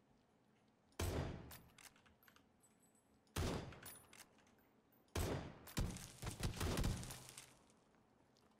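Rifle shots crack loudly, several in quick bursts.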